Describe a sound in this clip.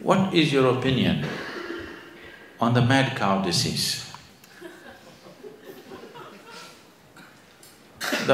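An elderly man speaks calmly and deliberately into a microphone, with pauses.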